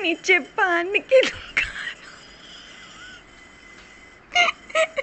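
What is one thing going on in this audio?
A young girl laughs loudly and teasingly, heard up close.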